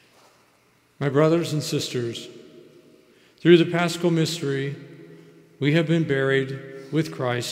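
A man sings loudly through a loudspeaker in a large echoing hall.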